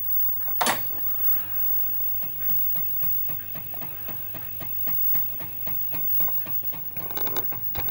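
A floppy disk drive clicks and ticks in a quick, steady rhythm.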